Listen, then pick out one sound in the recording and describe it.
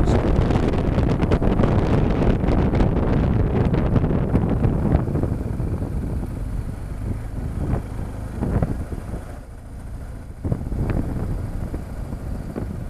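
Wind buffets loudly past a motorcycle rider's helmet.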